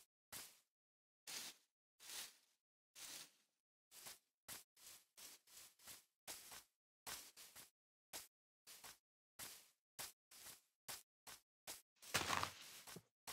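Footsteps crunch on grass at a steady walking pace.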